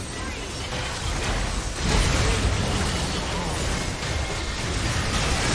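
Video game spells and magic blasts crackle and boom in a fast fight.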